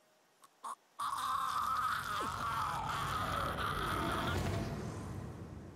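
A man screams in pain.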